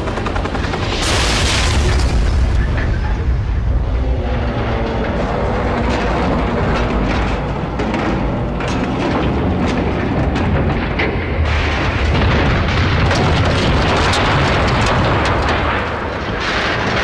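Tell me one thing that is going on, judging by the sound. Fire roars and rumbles after a blast.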